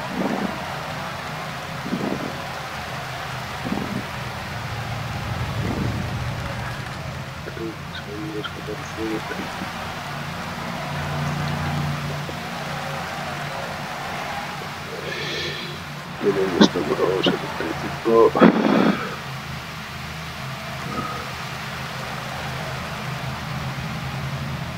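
A crowd cheers and claps along a roadside.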